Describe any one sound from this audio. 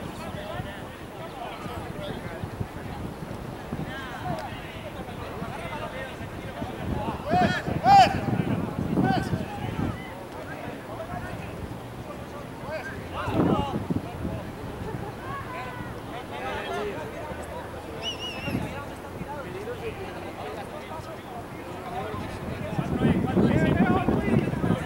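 Soccer players shout and call to each other across an open field.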